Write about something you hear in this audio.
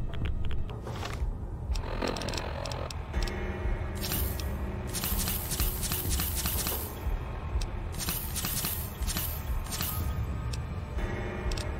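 Short electronic clicks tick as a menu is scrolled through.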